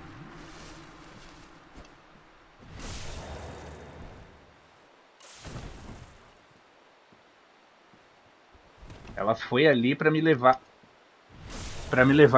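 Swords clash and strike.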